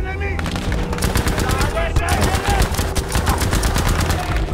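A rifle fires rapid bursts of shots nearby.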